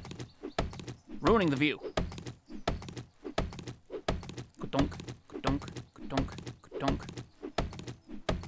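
A stone axe chops repeatedly into a tree trunk with dull thuds.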